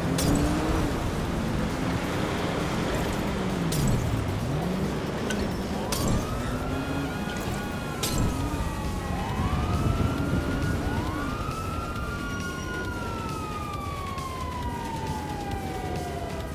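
A car fire roars and crackles steadily.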